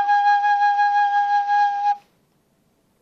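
A bamboo flute plays a steady held note, then stops.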